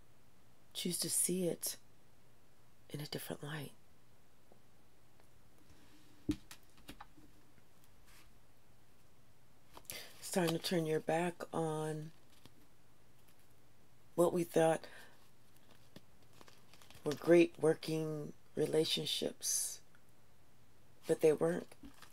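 A woman speaks calmly and close to a microphone, in short bursts.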